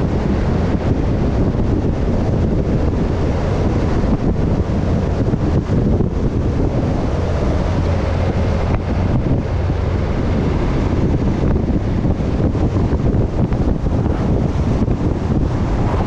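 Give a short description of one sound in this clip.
Wind buffets loudly against a moving vehicle.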